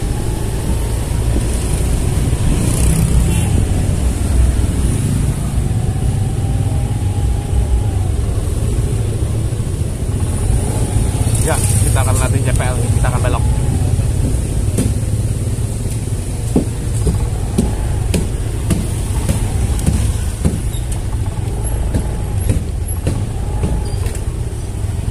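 Other motorcycles putter past nearby.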